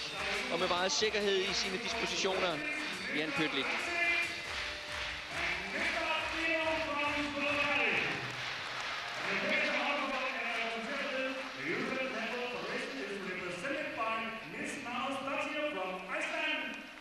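A large crowd sings together in a big echoing hall.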